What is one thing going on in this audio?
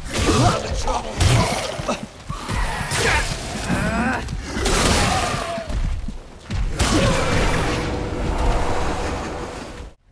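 A heavy blade thuds into bodies.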